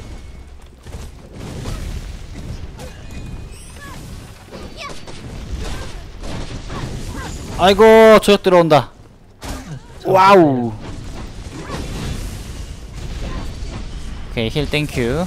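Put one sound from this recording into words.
Game weapons fire and blast in rapid bursts.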